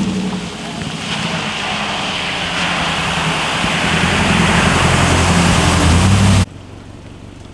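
Floodwater sprays and splashes up from a pickup truck's tyres.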